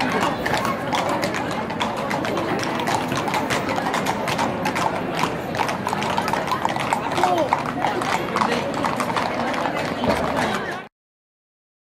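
Horse hooves clop on a paved street.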